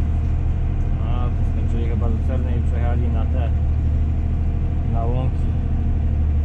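A young man speaks briefly over the engine noise.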